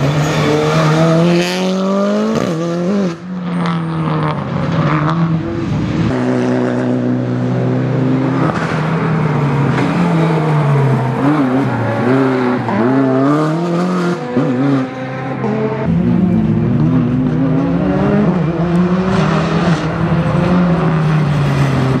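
A rally car engine roars loudly, revving up and down as gears shift.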